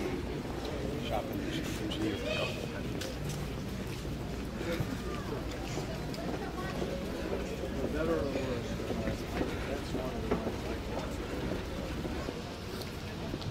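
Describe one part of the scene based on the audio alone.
Men talk nearby in a group outdoors.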